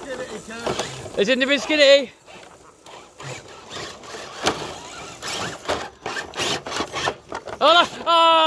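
Twigs and dry leaves crackle under small tyres.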